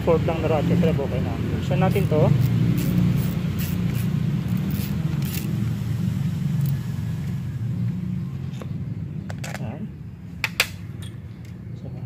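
A metal tool clicks and taps against the engine.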